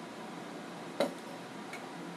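A glass is set down on a table with a clink.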